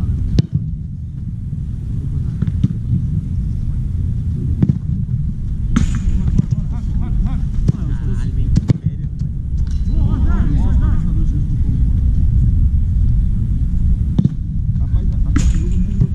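Wind rumbles steadily across an open outdoor field.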